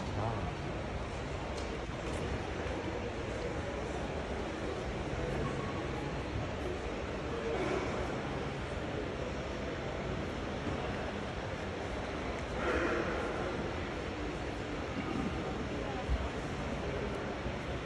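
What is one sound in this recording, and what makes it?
Voices of a crowd murmur steadily in a large, echoing hall.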